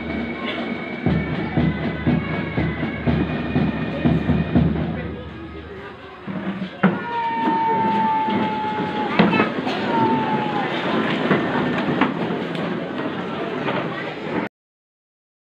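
A crowd of spectators murmurs and chatters nearby, outdoors.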